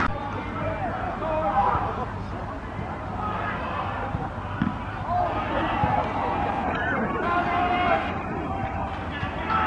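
Young men shout to each other across an open pitch outdoors.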